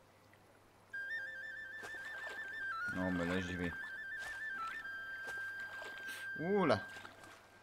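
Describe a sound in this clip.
Water splashes softly as something wades through it.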